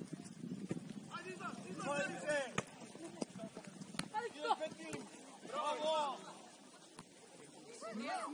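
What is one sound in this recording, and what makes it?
Young players shout to each other outdoors across an open field.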